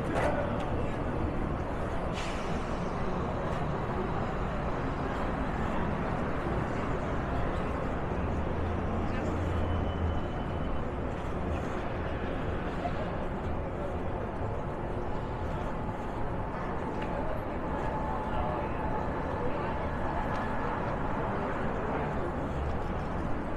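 A busy city street hums with traffic and distant voices.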